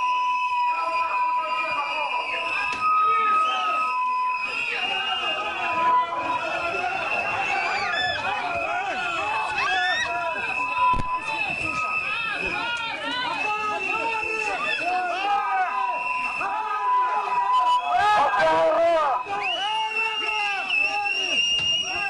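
A crowd of men and women shout and argue loudly close by.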